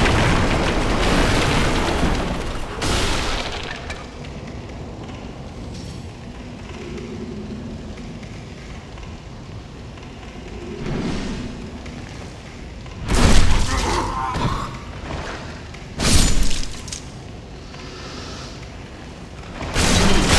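A sword swings and strikes with a heavy thud.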